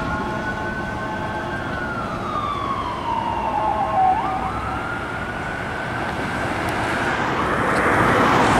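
An ambulance siren wails, sweeping down and up in pitch.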